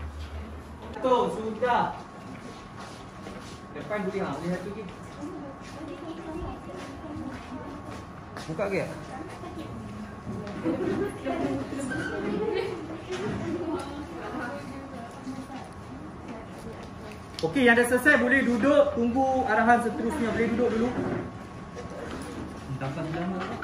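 Young girls chatter and talk with one another nearby.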